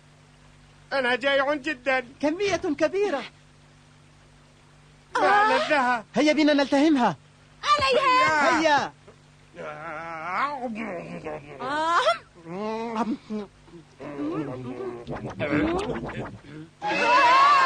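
Young boys talk excitedly, one after another.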